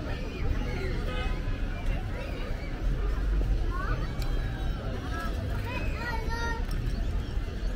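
A man and a woman chat casually nearby.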